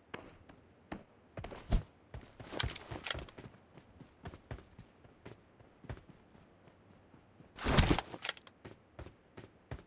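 Footsteps clatter on roof tiles.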